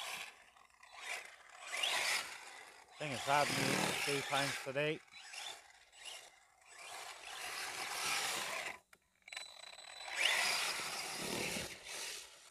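A small electric motor whines and revs in bursts.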